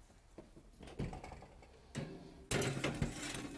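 An oven door clunks open.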